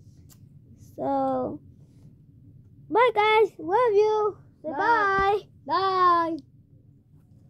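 A young boy sings short, high drawn-out notes close by.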